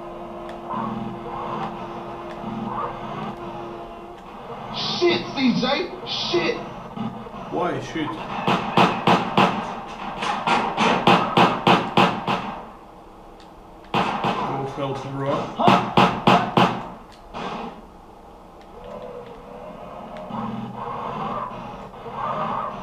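A small forklift engine hums and whines in a video game.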